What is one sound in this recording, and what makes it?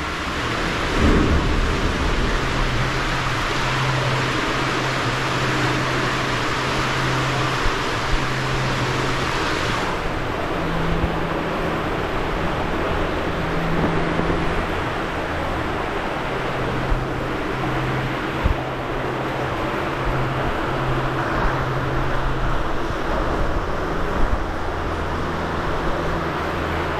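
Water rushes steadily down a slide tube, echoing in a large hall.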